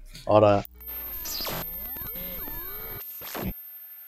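A television hisses with static.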